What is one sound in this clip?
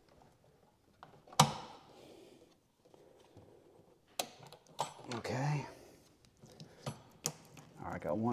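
Plastic and metal engine parts click and knock under a hand.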